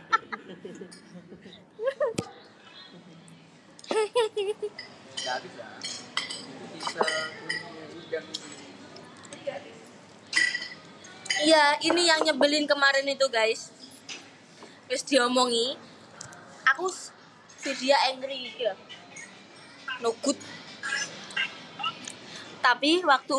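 A young woman talks and laughs close to a phone microphone.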